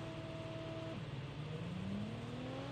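A vehicle engine revs up with a rising whine.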